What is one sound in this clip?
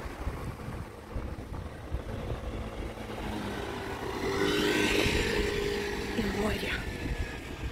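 A motorbike engine passes by.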